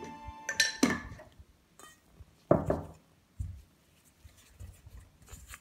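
A spatula scrapes and thuds through stiff dough in a ceramic bowl.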